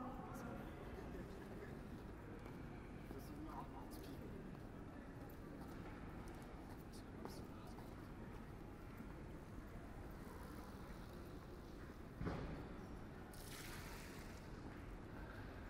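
A quiet pedestrian street outdoors fills with a steady low hum.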